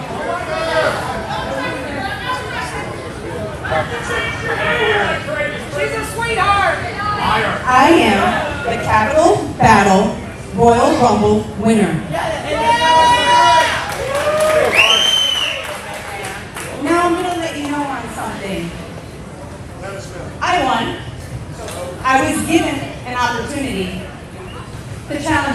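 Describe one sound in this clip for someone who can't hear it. A young woman speaks loudly and forcefully into a microphone through loudspeakers, in a large echoing hall.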